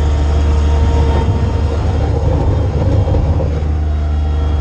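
Hydraulics whine as a loader's arms move.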